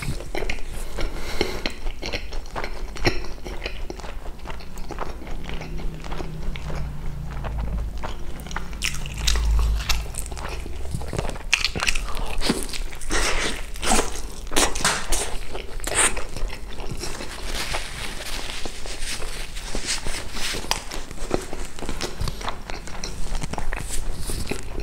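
A man chews food loudly and wetly close to a microphone.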